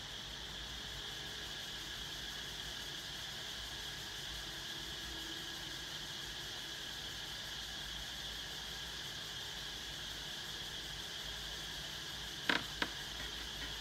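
An electric fan hums steadily nearby.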